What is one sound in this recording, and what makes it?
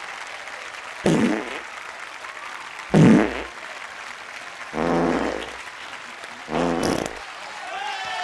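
A crowd cheers and claps in a large hall.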